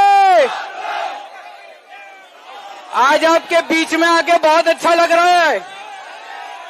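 A man shouts slogans through a loudspeaker microphone.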